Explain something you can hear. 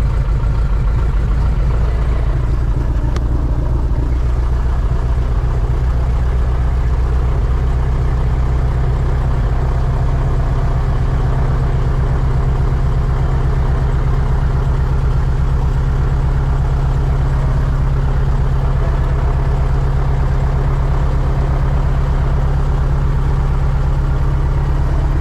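A heavy engine rumbles steadily throughout.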